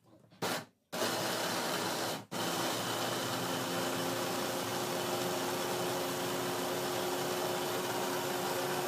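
An electric chopper whirs loudly as its blade spins through food.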